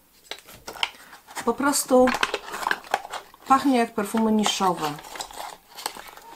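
A cardboard box rustles and scrapes in a woman's hands.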